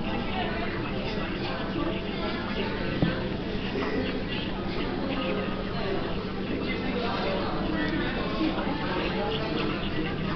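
Paper rustles and crinkles close by as it is handled.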